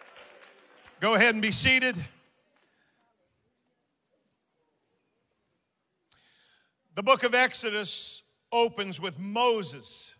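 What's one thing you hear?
An older man speaks with animation into a microphone in a large echoing hall.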